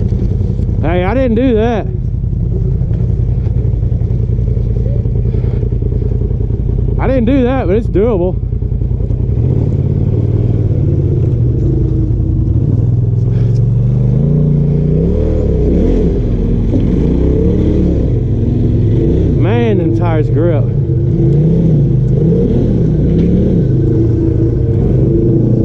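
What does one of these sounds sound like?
An off-road vehicle's engine revs and rumbles loudly as it climbs over rocks.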